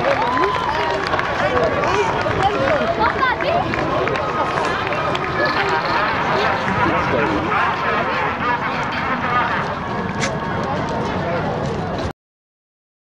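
Footballers shout and cheer outdoors.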